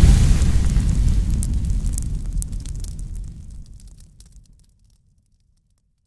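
Flames roar with a deep rumble and slowly fade away.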